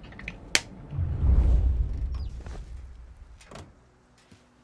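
A car engine rumbles and revs.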